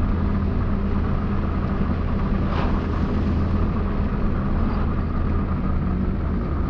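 Tyres roll on asphalt with a steady rumble.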